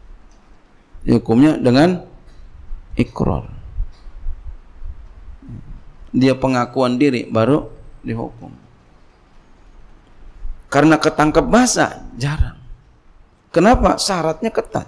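A middle-aged man speaks calmly into a microphone, in bursts with pauses.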